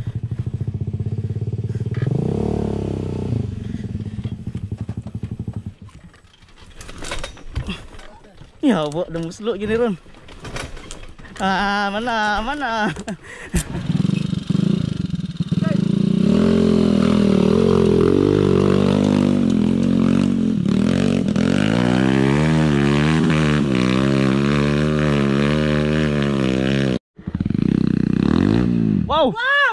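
A dirt bike engine putters and revs up close.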